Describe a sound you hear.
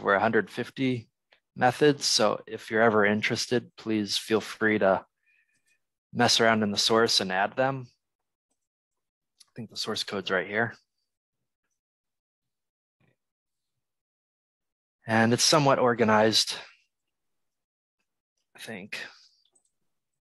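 A young man talks calmly into a close microphone, in bursts with pauses.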